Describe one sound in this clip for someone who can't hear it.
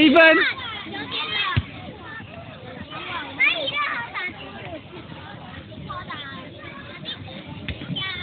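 A ball bounces on hard ground.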